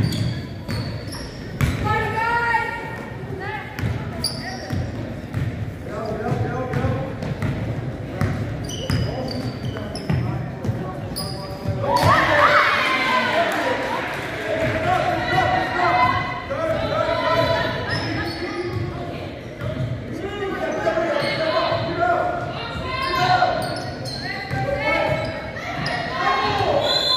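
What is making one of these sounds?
Young women call out and shout to one another across the court.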